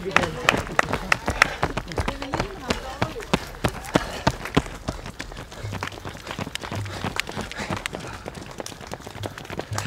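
Running shoes slap rhythmically on pavement close by.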